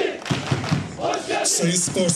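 Young men clap their hands.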